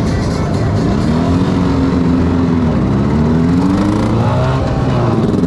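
A second motorcycle engine revs close by.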